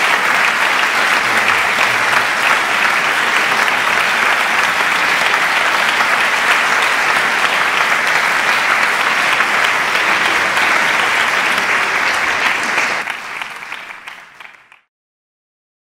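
A large audience applauds steadily in an echoing hall, then the applause fades away.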